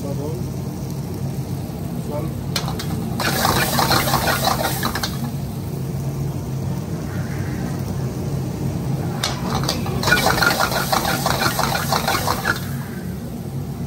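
A burner roars steadily.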